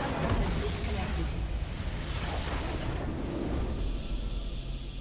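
A loud rumbling explosion booms and crackles.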